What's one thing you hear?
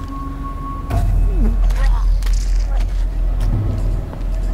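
Heavy thuds and impacts sound as a game figure overpowers another.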